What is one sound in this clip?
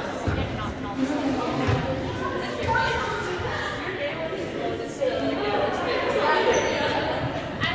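Young women shout and call out to each other across a large echoing gym.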